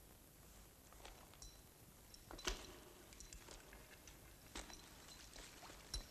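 A coiled rope rustles and knocks as it is handled.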